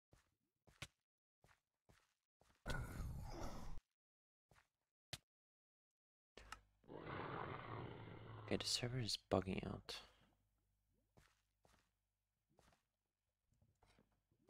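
Footsteps crunch on the ground in a video game.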